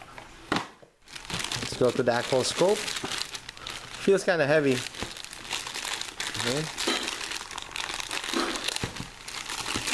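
A plastic bag crinkles as it is unwrapped.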